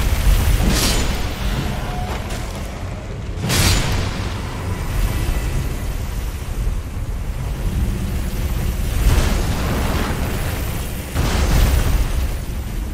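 A sword swings through the air with a sharp whoosh.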